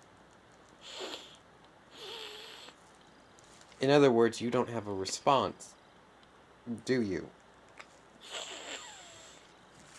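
A young man sips from a cup.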